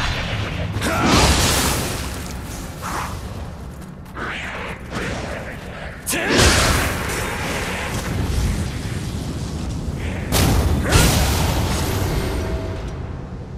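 Swords swish and clash in a fight.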